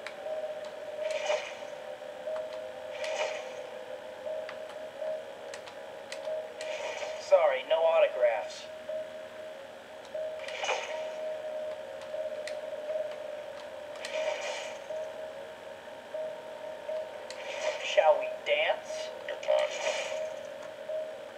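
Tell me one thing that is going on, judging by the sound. Sound effects of punches and hits burst out from the game.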